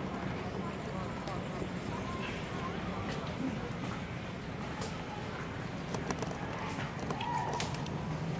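Monkeys' feet patter and rustle over dry leaves on pavement.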